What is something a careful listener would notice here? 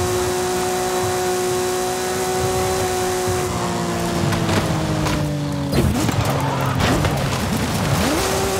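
A sports car engine roars at high speed, then its pitch drops as it slows.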